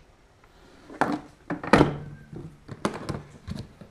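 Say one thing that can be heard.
A plastic case lid thuds shut.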